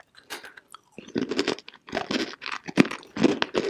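A young woman bites and crunches a hard chalky lump close to a microphone.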